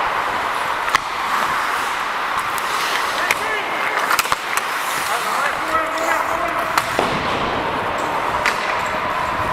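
Hockey sticks clack sharply against a puck.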